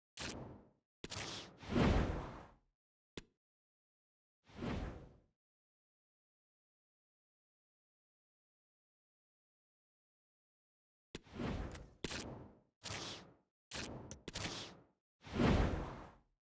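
Short whooshing swishes sound in bursts.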